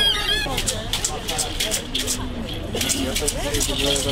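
A child plays a small hand drum.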